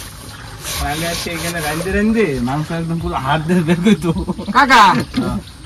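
A young man talks calmly nearby.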